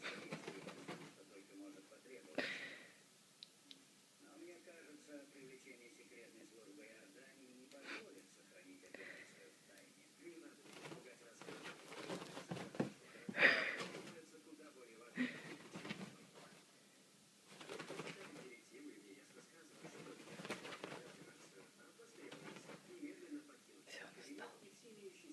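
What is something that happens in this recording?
A cat scrambles and pounces on a soft bedspread, rustling the fabric.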